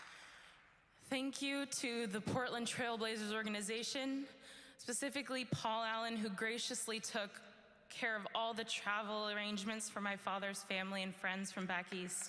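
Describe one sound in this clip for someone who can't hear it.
A young woman sings slowly through a microphone.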